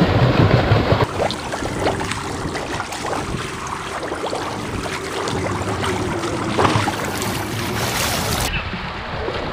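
Water laps and splashes against a pool edge close by.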